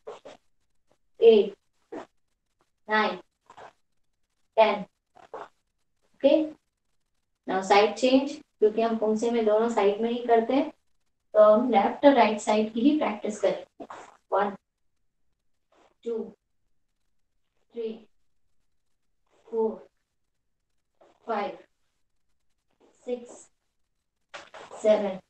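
A young woman calls out loudly in short bursts, with stretches of quicker speech between them.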